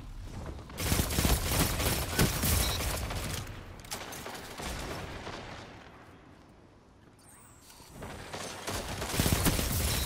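Gunshots fire in quick bursts, loud and sharp.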